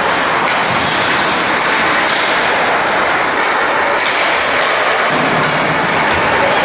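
Ice skates scrape and hiss across ice in a large echoing arena.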